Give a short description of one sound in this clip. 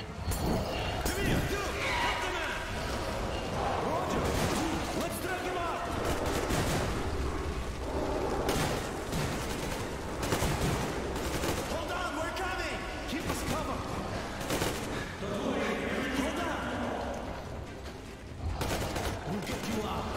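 A monster snarls and growls close by.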